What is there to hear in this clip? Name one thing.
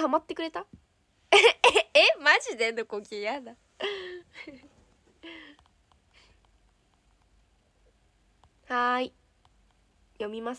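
A young woman talks cheerfully close to a phone microphone.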